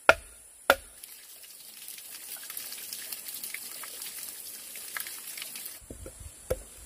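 Water drips and splashes steadily onto the ground.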